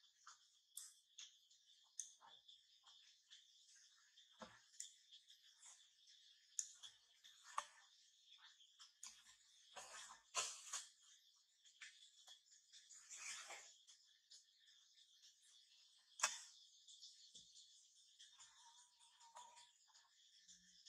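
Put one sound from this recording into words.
Baby monkeys squeak and whimper close by.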